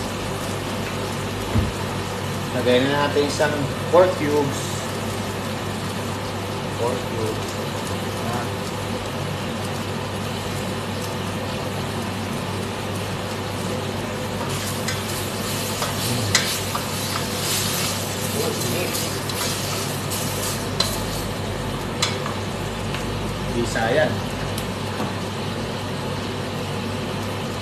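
A gas burner hisses steadily.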